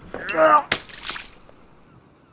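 A pirate man speaks gruffly.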